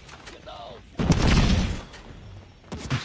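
An explosion booms in a game.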